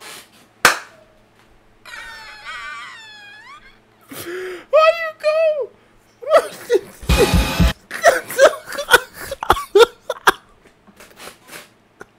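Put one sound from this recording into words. A young man laughs hard.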